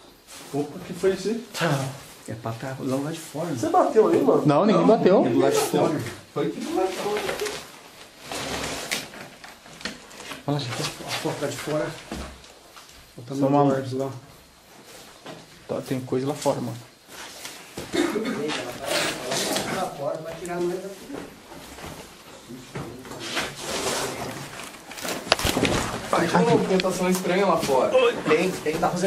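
A man talks quietly and closely, with animation.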